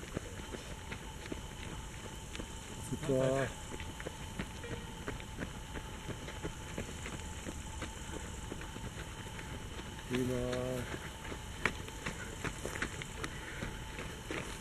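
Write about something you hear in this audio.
Runners' footsteps crunch on gravel.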